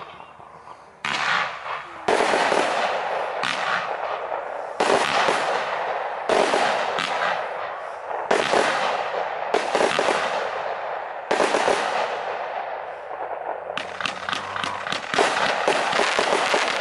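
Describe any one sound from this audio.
A fireworks cake fires shot after shot outdoors, each launch ending in a bang.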